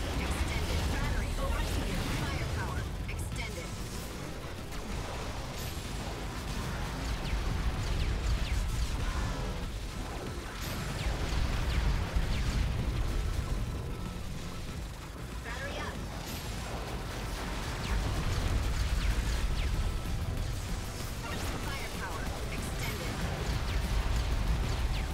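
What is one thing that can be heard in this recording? Electronic game music plays with a steady thumping bass.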